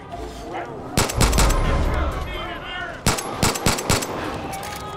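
A pistol fires sharp, loud shots.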